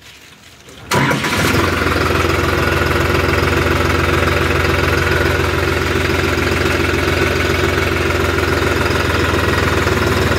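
A tractor engine starts and idles steadily.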